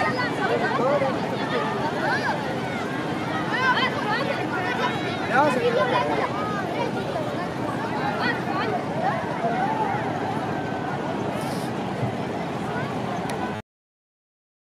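A crowd of men chatters and calls out outdoors.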